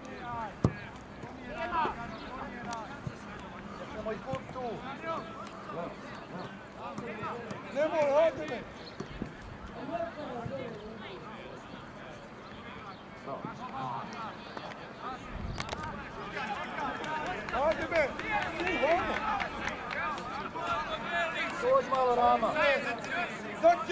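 A crowd of spectators chatters and shouts outdoors, growing louder later on.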